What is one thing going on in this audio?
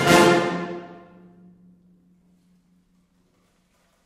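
A large band holds a loud final chord that rings away in a large echoing hall.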